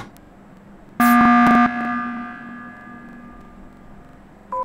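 A loud game alert blares briefly and rings out.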